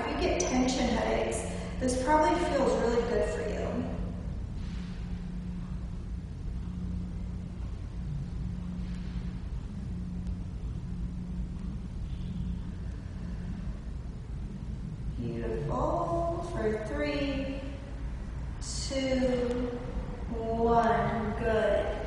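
A young woman speaks calmly and clearly, as if instructing, close by.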